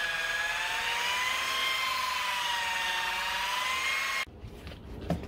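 A power polisher whirs with a wavering hum.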